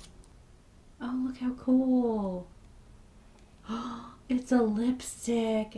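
A girl speaks close by, brightly and with animation.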